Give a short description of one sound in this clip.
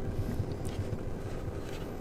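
Oil trickles into a metal pan.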